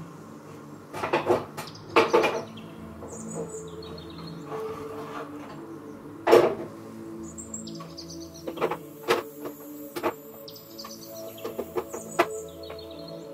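Pots and pans clatter and knock on a stovetop.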